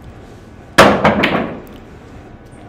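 Pool balls click against each other and roll across the table.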